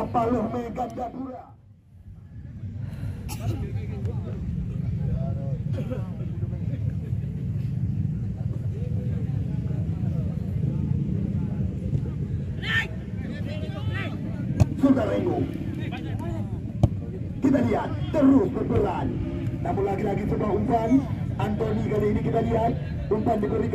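A crowd of spectators shouts and cheers in the distance outdoors.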